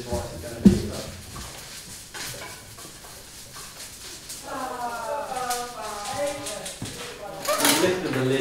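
Dishes and utensils clink and knock.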